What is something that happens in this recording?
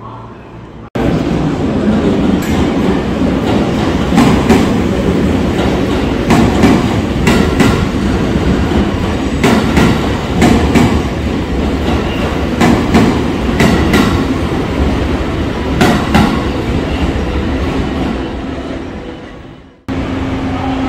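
A train rumbles past, wheels clattering over rail joints.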